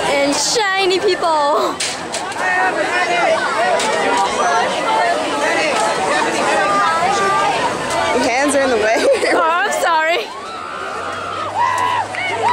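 A crowd of people chatter and call out loudly nearby.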